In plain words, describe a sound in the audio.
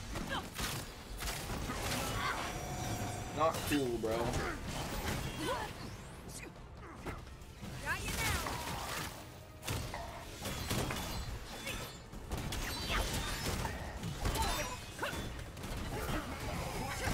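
Blows and blasts thud and crackle in a fight.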